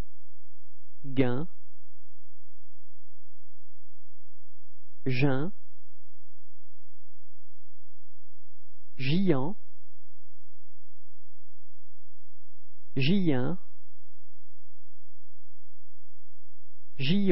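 A woman slowly and clearly pronounces single short words into a microphone, pausing a few seconds between each.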